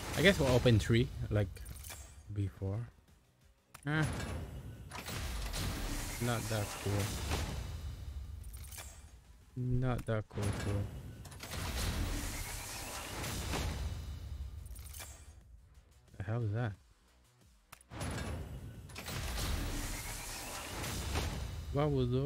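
Game music swells with chimes and whooshes as a chest opens.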